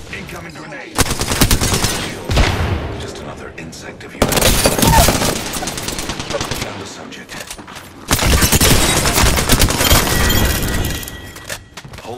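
Rapid gunfire bursts out loudly in several bursts.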